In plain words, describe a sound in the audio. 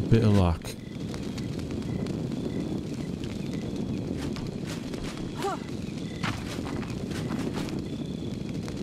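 A torch fire crackles and roars steadily.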